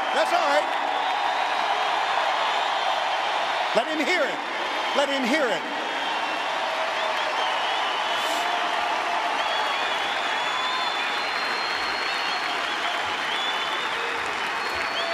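A large stadium crowd cheers and applauds loudly, echoing across open stands.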